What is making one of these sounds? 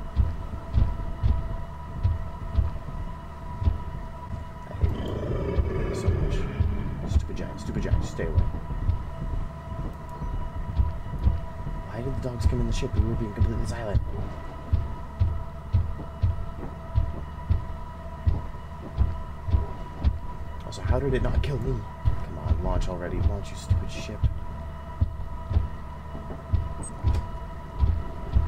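A submarine engine thumps in a steady, low rhythm.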